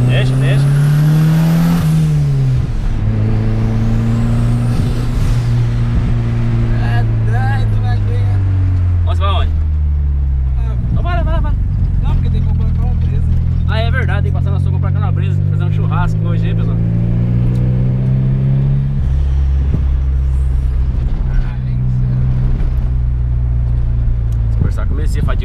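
A car engine drones loudly, rising and falling in pitch as it revs and shifts gears.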